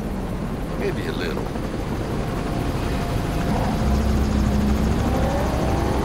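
An aircraft engine drones overhead.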